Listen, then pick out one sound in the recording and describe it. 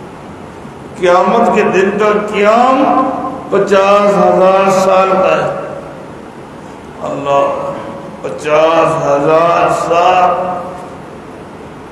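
A middle-aged man speaks calmly into a close microphone, in short phrases with pauses.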